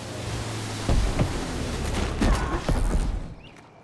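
A boat bumps against a wooden dock.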